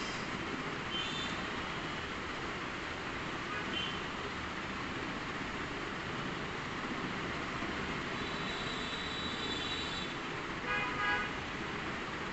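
A toddler babbles and squeals.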